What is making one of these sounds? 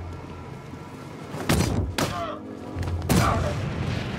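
Heavy punches thud in a brief brawl.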